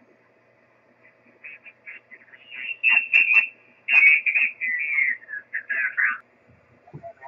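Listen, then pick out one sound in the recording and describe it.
A man's voice comes through a radio loudspeaker, thin and crackly.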